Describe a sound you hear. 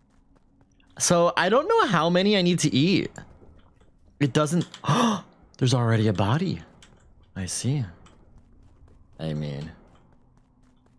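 A young man talks animatedly and close into a microphone, in short bursts.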